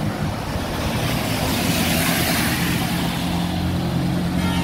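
Tyres hiss on a wet road, swelling as a car passes.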